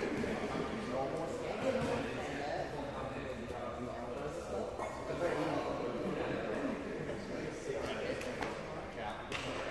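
Several adult men and women talk nearby in a large echoing hall.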